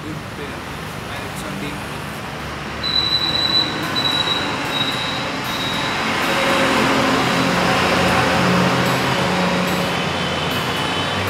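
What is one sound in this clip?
An acoustic guitar is strummed close by.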